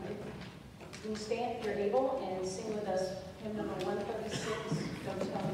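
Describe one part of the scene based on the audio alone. A young girl sings.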